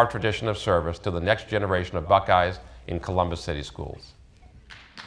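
An older man speaks calmly and clearly into a microphone.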